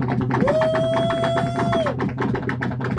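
A man shouts loudly with excitement, close by.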